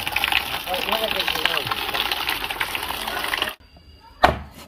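Water pours and splashes into a plastic tub.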